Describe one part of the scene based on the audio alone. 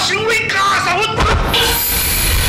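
A man chants forcefully, close by.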